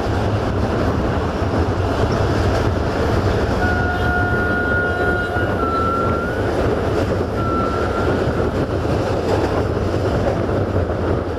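A train rumbles steadily along the tracks, heard up close.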